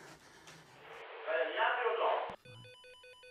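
A man speaks through an intercom loudspeaker.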